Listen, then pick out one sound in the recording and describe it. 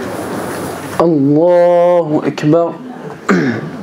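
A young man chants loudly through a microphone in an echoing hall.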